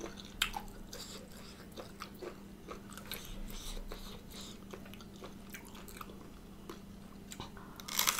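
A woman crunches into a crisp piece of food up close.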